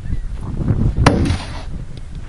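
An object thuds onto sand close by.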